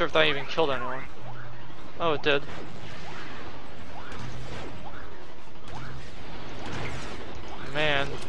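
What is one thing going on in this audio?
Laser blasters fire in quick repeated shots.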